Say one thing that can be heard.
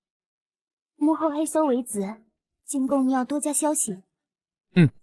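A young woman speaks calmly and clearly, close by.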